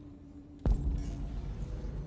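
A fire crackles in a barrel.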